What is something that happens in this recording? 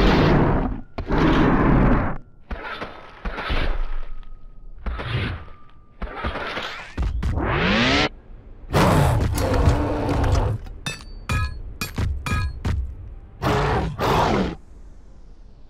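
A large beast roars and growls in loud bursts.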